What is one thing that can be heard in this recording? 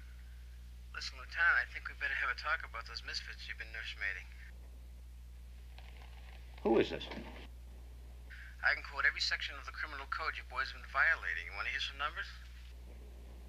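A middle-aged man speaks firmly and calmly into a telephone.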